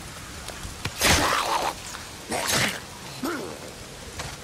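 A blade strikes flesh with heavy thuds.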